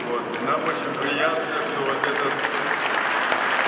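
An elderly man speaks loudly into a microphone over a loudspeaker, outdoors.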